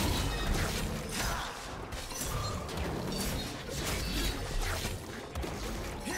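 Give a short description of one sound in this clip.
Game weapons strike with sharp hits.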